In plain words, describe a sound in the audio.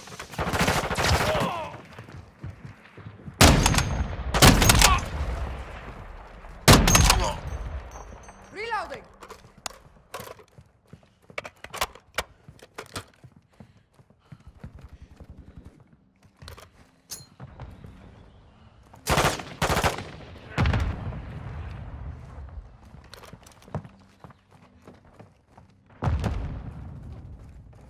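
Loud gunshots boom and echo.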